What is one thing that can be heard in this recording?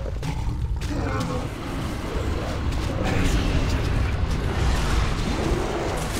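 Magic spells burst and crackle in a game battle.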